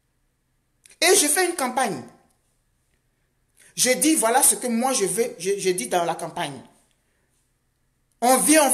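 A middle-aged woman speaks calmly and earnestly, close to the microphone, with long pauses.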